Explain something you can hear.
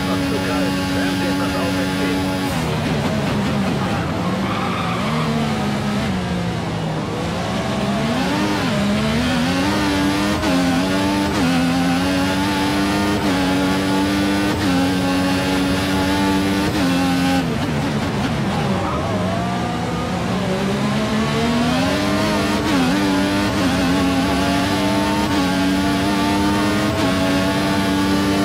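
A racing car engine screams at high revs, dropping as it brakes for corners and climbing through the gears again.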